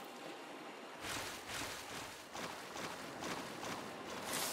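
Water splashes in quick bursts.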